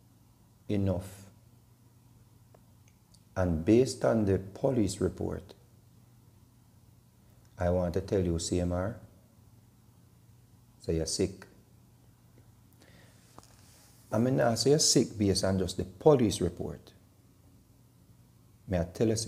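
A middle-aged man speaks calmly and close to the microphone, in short bursts with pauses.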